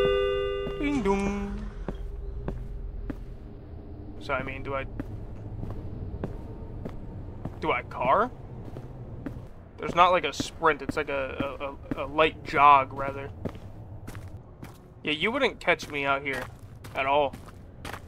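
Footsteps crunch slowly over hard ground and gravel.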